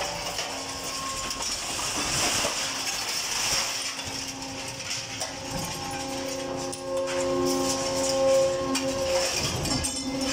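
A heavy machine runs close by with a steady, noisy mechanical roar.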